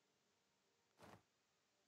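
A soft click sounds as a game button is pressed.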